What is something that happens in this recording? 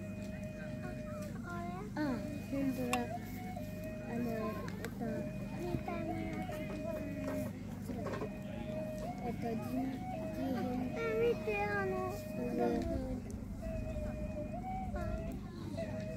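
A woman sings a slow, wavering chant through a microphone.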